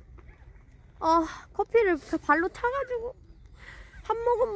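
A young woman speaks close by with animation, her voice high and lilting.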